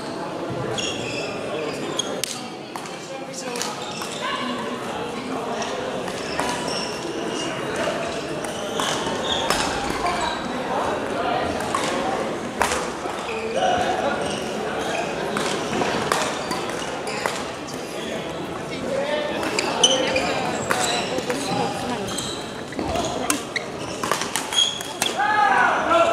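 Shuttlecocks are struck with rackets, with sharp pops in a large echoing hall.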